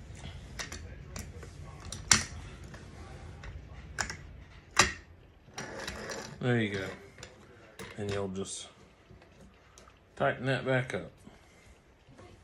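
Lens parts click and rattle as they are twisted together.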